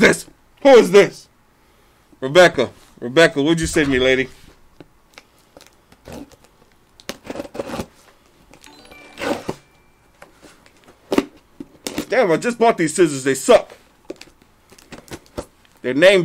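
Cardboard rustles as a box is opened.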